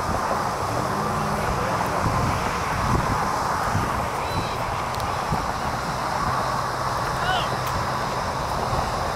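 Wind blows steadily across an open field.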